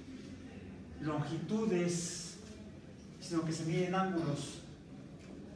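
A man speaks calmly in an echoing room.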